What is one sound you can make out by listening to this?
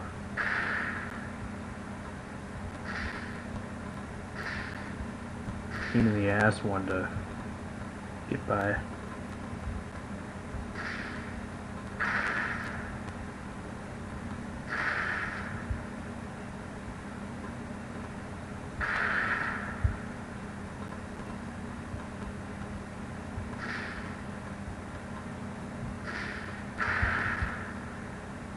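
Short whooshing game sound effects burst out again and again.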